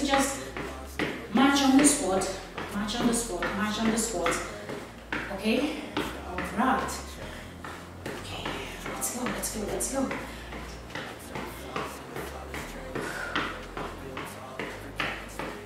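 A young woman talks with energy, close by.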